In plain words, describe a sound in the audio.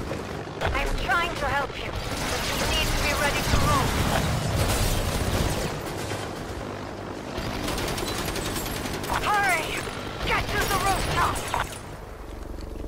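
A woman speaks urgently nearby.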